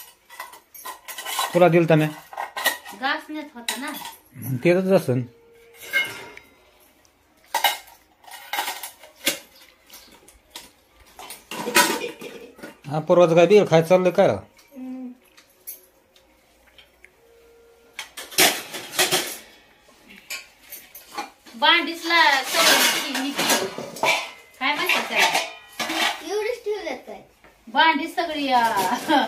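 Metal dishes clatter and clink.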